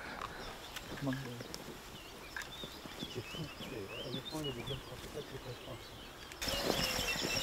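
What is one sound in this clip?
A man talks quietly in the distance.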